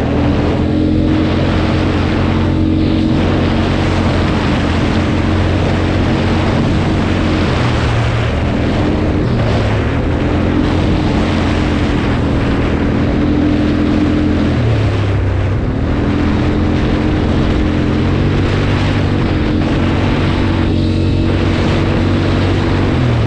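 Wind rushes over the microphone.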